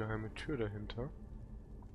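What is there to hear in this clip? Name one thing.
A fire crackles softly nearby.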